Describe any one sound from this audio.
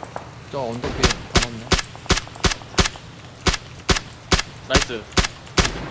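A rifle fires single shots in quick, even succession.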